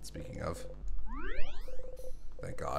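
A bright electronic chime rises in pitch.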